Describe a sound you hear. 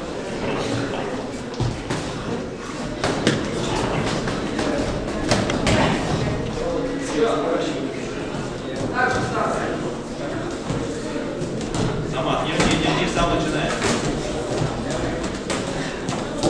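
Boxing shoes scuff and squeak on the ring floor.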